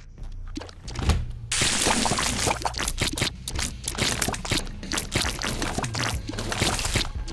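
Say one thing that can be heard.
Rapid cartoonish shots pop and splat in a video game.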